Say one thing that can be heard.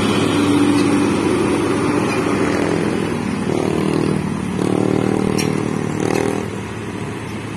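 A heavy truck engine rumbles close by.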